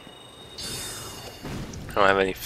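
A magic bolt crackles and whooshes past.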